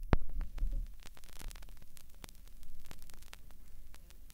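A vinyl record crackles and pops softly as it plays.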